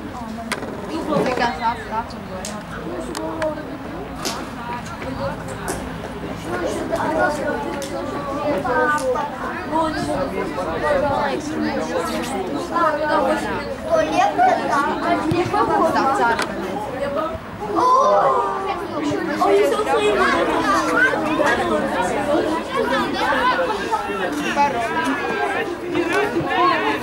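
Players shout to one another across an outdoor field.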